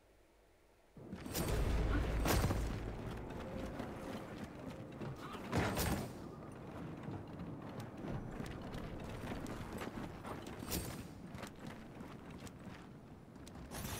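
Heavy boots thud quickly across a hard floor.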